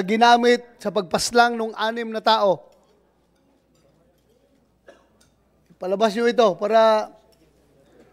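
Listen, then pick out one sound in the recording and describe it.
A middle-aged man speaks firmly into a microphone in short bursts.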